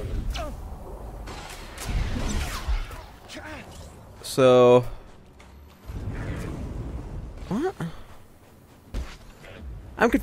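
A lightsaber hums and swooshes as it swings.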